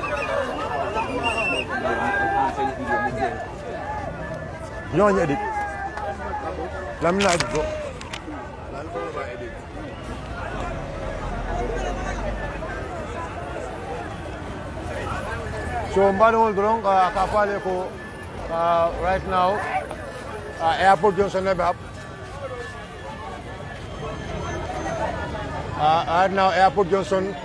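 A large crowd cheers and sings loudly outdoors.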